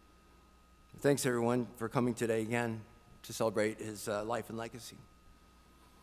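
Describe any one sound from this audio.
A middle-aged man speaks calmly into a microphone in a reverberant room.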